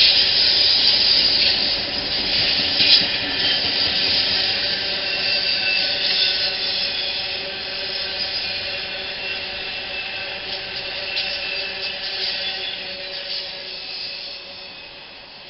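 A freight train rumbles past close by, wheels clattering and squealing on the rails.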